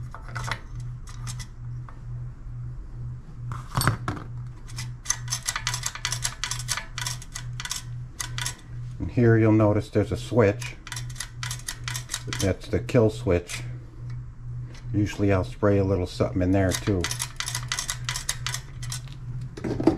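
Metal parts click and clatter as they are handled.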